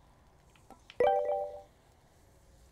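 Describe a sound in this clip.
A short electronic chime rings.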